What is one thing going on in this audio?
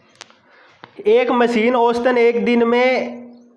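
A man speaks loudly and clearly, reading aloud close by.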